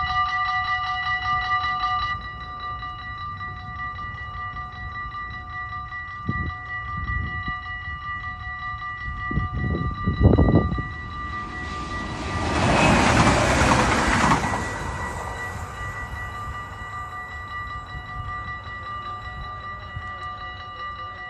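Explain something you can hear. A level crossing bell rings rapidly and steadily.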